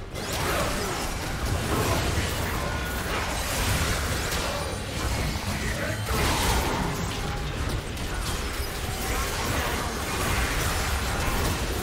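Game spell effects crackle and blast in a dense, chaotic fight.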